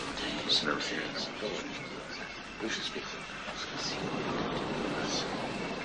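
A crowd of men murmurs outdoors.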